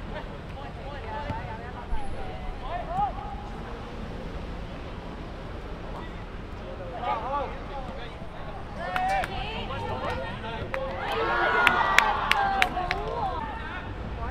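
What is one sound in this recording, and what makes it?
Young players shout to each other across an open outdoor field.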